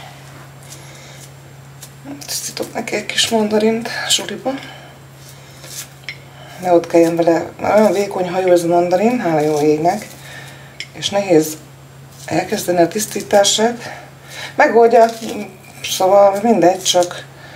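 A mandarin peel tears softly.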